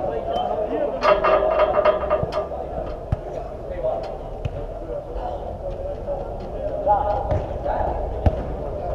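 Players shout to each other across a large echoing indoor pitch.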